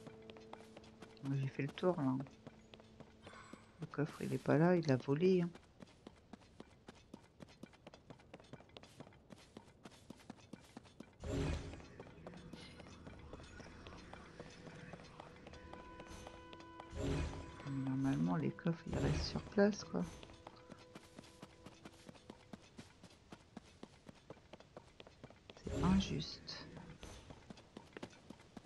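Footsteps patter quickly over stone and dry grass.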